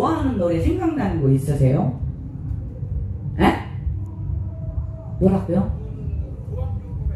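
A young woman sings loudly through a microphone over loudspeakers.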